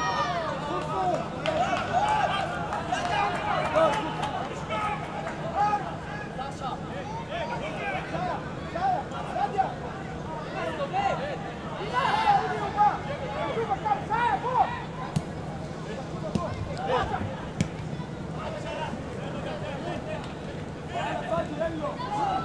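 A crowd murmurs steadily in the stands, outdoors.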